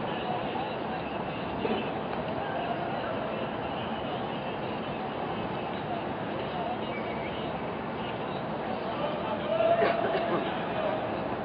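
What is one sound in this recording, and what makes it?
Young men shout to each other across an open field, some way off.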